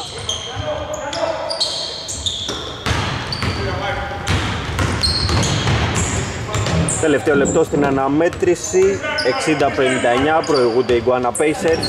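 Sneakers squeak sharply on a hardwood floor in a large echoing hall.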